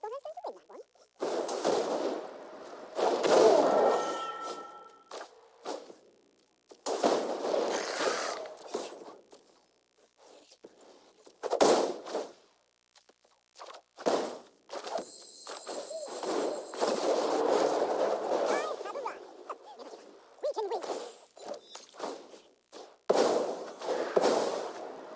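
A card game plays soft chimes and magical whooshes.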